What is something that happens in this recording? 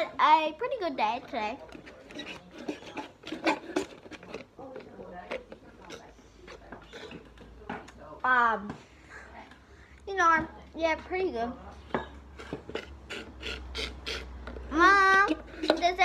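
A young girl sips a drink through a straw.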